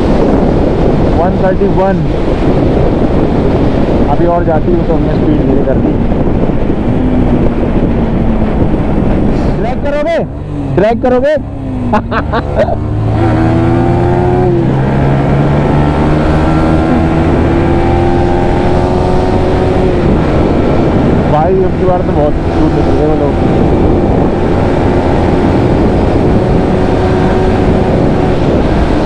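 A single-cylinder sport bike engine accelerates through the gears.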